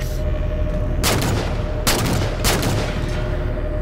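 A rifle fires loud sharp shots, each followed by a short ringing echo.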